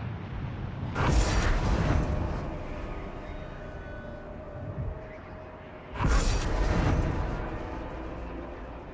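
A deep booming whoosh sounds as a new area opens up.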